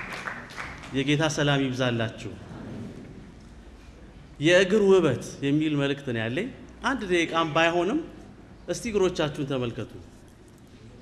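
A man speaks with animation through a microphone in an echoing hall.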